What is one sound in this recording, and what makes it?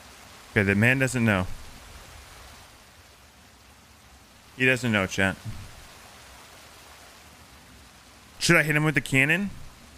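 A young man speaks into a close microphone in short, animated bursts.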